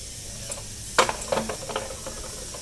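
A metal ramp clanks against the floor.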